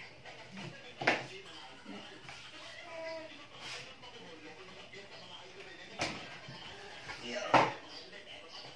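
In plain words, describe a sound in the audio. A plastic chair knocks and creaks on a hard floor.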